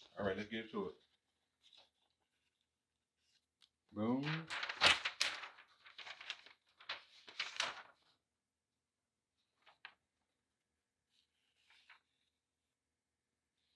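Paper rustles as it is laid flat.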